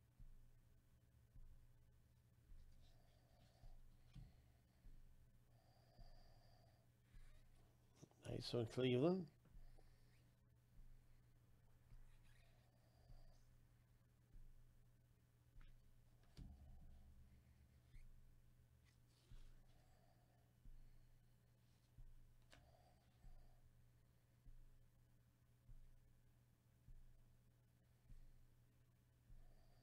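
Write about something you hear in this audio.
Glossy trading cards slide against one another in a stack.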